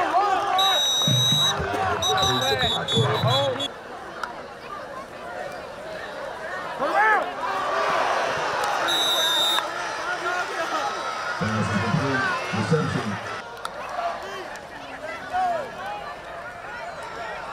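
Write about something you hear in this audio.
A crowd cheers and shouts from stands outdoors.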